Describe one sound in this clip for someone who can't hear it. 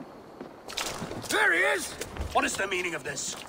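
A man calls out sharply nearby.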